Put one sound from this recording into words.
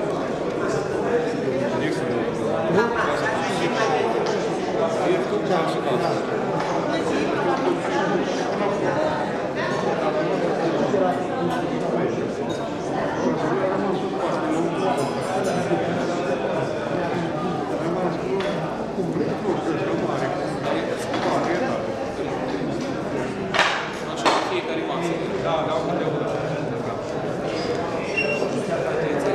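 A crowd of adults chatters throughout in a large room.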